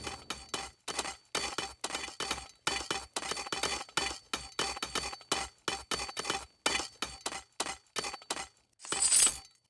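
Swords clash and clang in quick succession.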